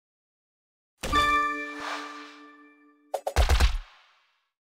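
Game sound effects chime as gems are matched.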